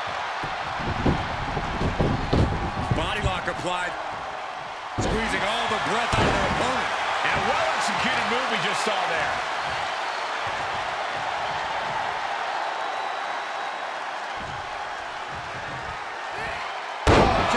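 A large crowd roars and cheers throughout.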